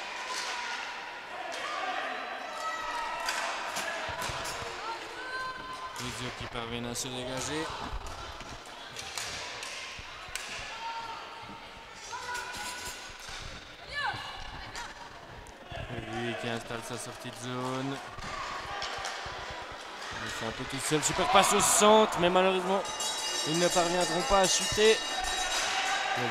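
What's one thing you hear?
A crowd of spectators shouts and cheers, louder toward the end.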